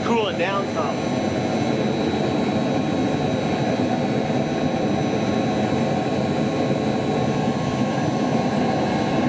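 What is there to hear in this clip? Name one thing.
A gas burner roars steadily into a furnace.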